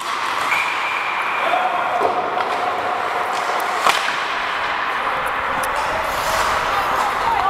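Ice skates scrape and hiss on the ice in a large echoing rink.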